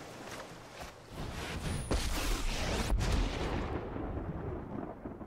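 A magical whooshing sound effect swells and fades.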